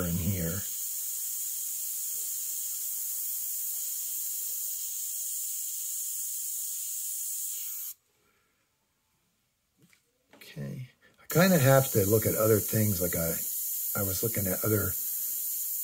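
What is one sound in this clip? An airbrush hisses steadily as it sprays.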